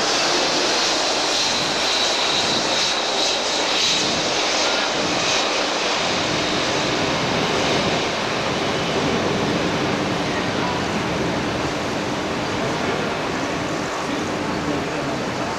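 A jet airliner's engines roar loudly as it comes in low to land.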